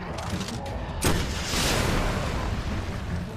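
A loud explosion bursts and roars.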